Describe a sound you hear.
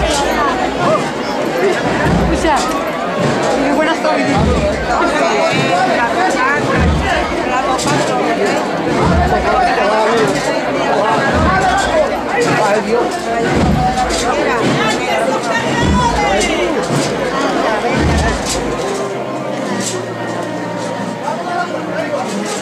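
A crowd murmurs nearby.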